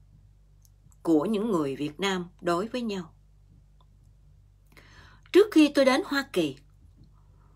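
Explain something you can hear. A middle-aged woman speaks calmly and close to the microphone, in short bursts with pauses.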